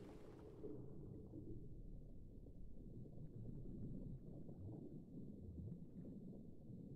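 Deep, muffled water churns and rumbles underwater.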